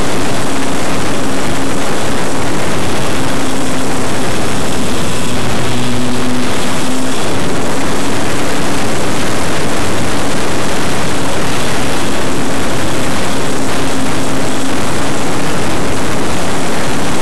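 A small electric motor hums steadily, rising and falling in pitch.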